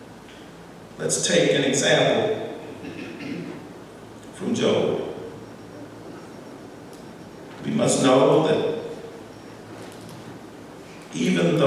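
A man speaks slowly and calmly into a microphone, with pauses, in a slightly echoing room.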